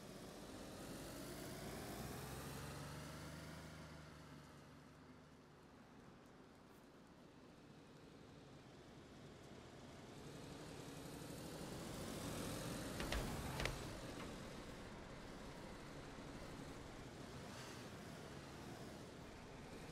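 A fire roars close by.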